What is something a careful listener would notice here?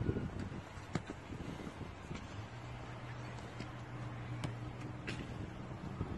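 A child kicks a football with a thud.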